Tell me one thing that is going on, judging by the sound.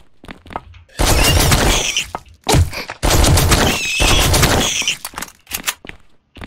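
A gun fires a rapid burst with loud blasts.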